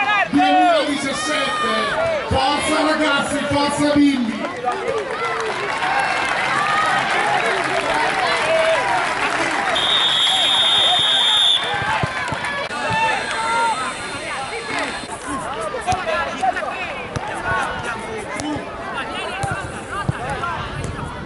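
Children shout and call out across an outdoor field.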